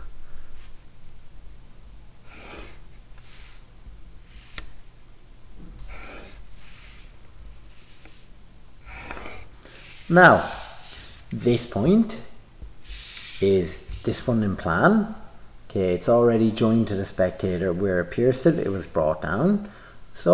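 A pencil scratches across paper in short strokes.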